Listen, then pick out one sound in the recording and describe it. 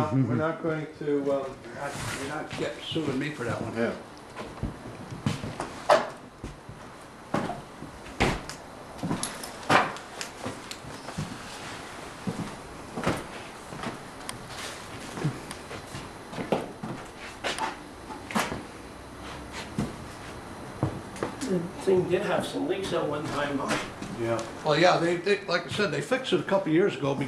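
A man talks nearby in a low voice.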